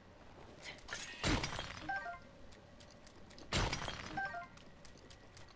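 A short bright chime sounds twice in a video game.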